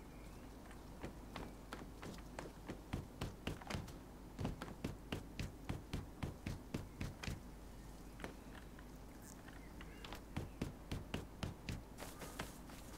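Footsteps thud quickly across hollow wooden boards.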